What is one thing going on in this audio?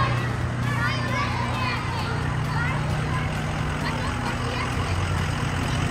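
A fire truck engine hums as it rolls past.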